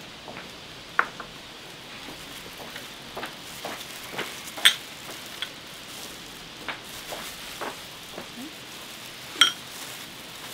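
Ceramic bowls clink as they are set down on a table.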